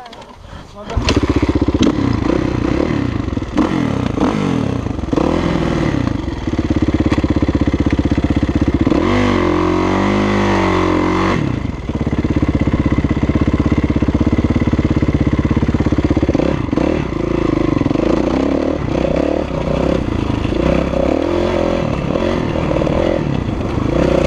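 A four-stroke 450 dirt bike engine revs hard as it climbs sandy hills.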